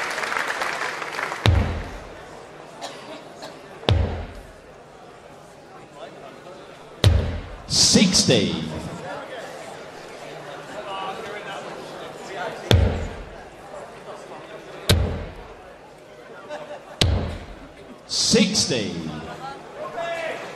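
A large crowd cheers and shouts in a big hall.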